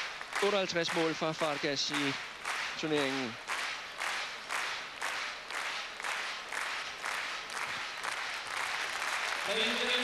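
A large crowd claps in steady rhythm in a big echoing hall.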